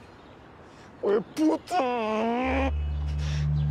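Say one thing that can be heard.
A young man shouts loudly nearby.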